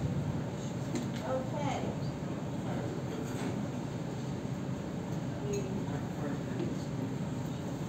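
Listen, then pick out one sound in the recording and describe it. A woman speaks in a room that echoes a little.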